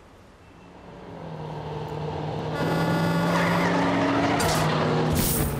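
A truck engine rumbles and grows louder as it passes close by.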